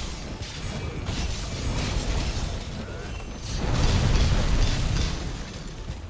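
Fiery explosions roar and crackle.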